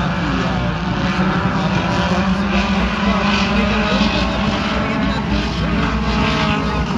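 Race car engines roar and drone steadily outdoors.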